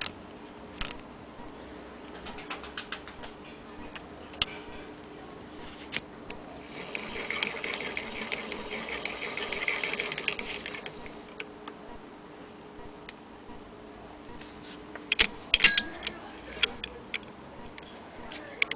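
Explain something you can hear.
Metal parts of a sewing machine click and tick as they are handled.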